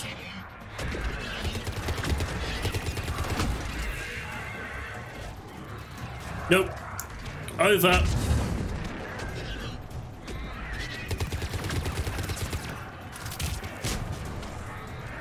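Video game gunfire crackles in bursts.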